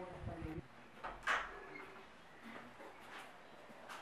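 A door swings open with a knock.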